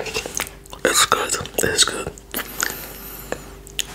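A man licks a finger with wet mouth sounds close to a microphone.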